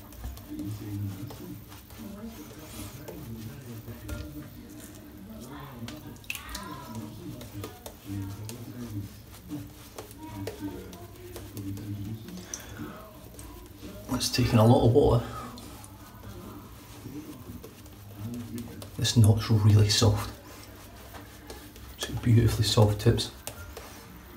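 A shaving brush swishes and rubs through lather on skin.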